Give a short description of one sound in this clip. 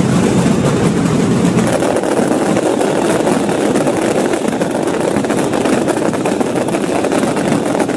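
Firecrackers crackle and pop in rapid bursts outdoors.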